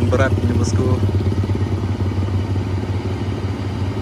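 A motorbike rides past close by.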